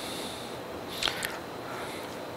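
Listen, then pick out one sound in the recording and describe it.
A small metal tool clinks against steel.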